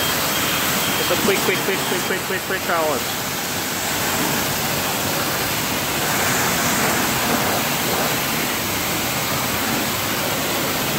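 A pressure washer sprays water loudly against a car with a steady hiss.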